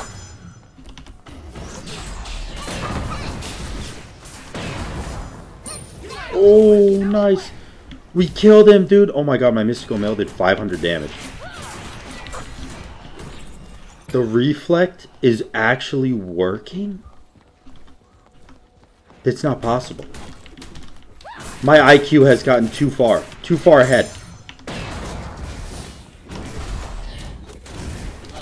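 Game combat effects whoosh and clash.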